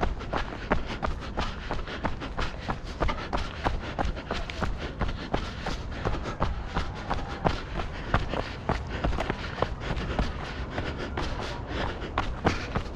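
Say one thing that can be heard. Footsteps crunch quickly on a dry dirt trail.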